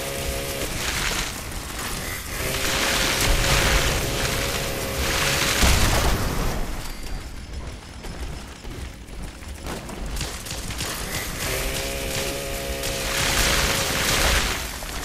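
A flamethrower roars in long bursts.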